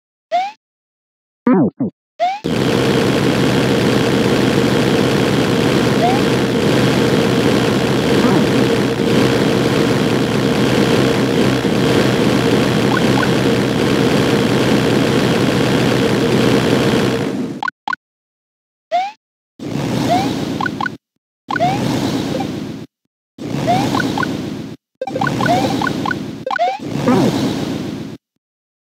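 A character makes short jumping chirps in a video game.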